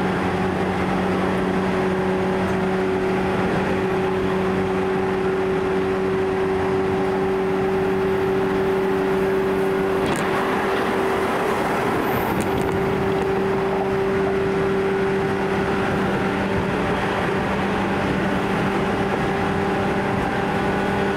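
A train hums and rumbles steadily along the tracks.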